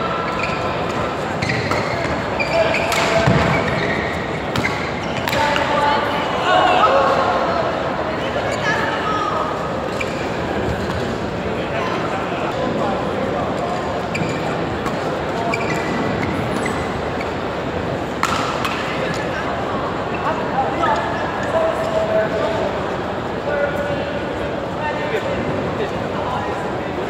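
Shuttlecocks are struck with sharp pops by rackets in a large echoing hall.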